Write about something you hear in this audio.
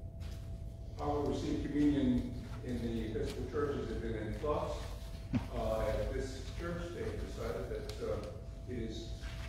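A man speaks calmly through a microphone in a large echoing room.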